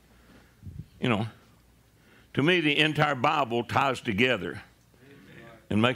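An older man preaches with animation into a microphone, in short bursts.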